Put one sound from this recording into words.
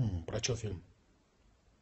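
A middle-aged man speaks briefly, close to a phone microphone.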